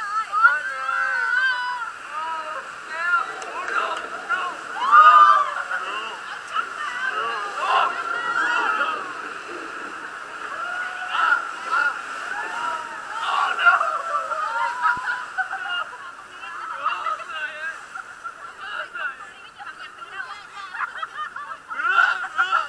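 Water splashes and rushes around a boat.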